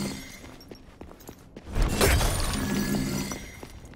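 A sword slashes and strikes with a loud crashing burst.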